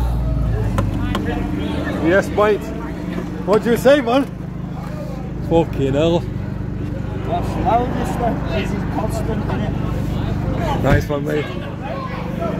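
A man talks casually from inside a car.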